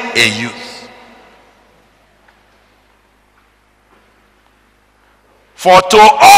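A man speaks loudly and with animation into a microphone, in a large echoing hall.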